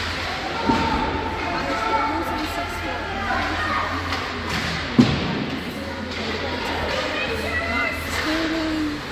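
Spectators chatter nearby in a large echoing rink.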